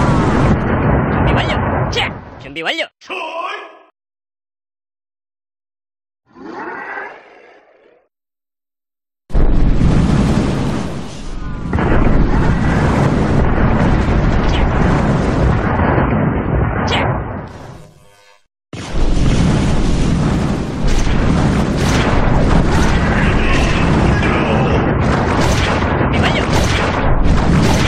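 Swords clash and clang in a battle.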